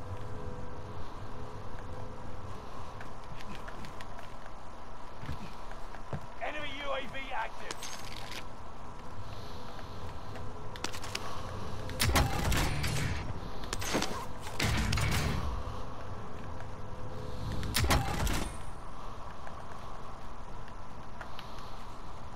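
Footsteps run over hard ground.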